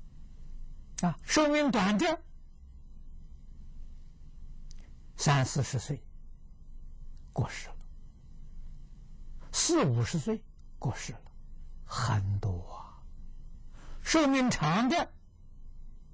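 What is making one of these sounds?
An elderly man speaks calmly into a close microphone, with pauses between phrases.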